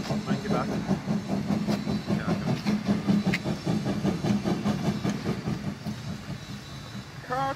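A steam locomotive chuffs in a quick, steady rhythm, then fades.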